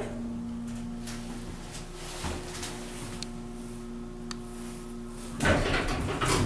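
An elevator hums steadily while moving.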